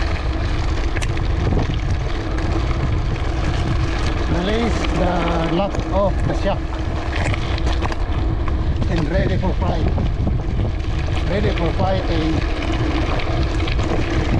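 Mountain bike tyres crunch over a gravel track.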